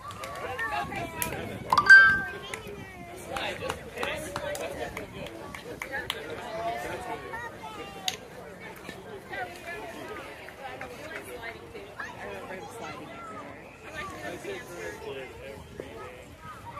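Children and adults chatter and call out nearby outdoors.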